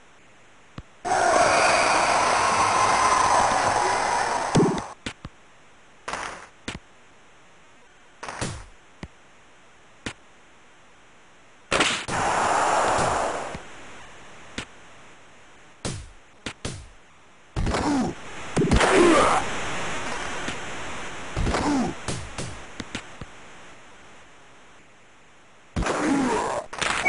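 A crowd roars and cheers in bursts.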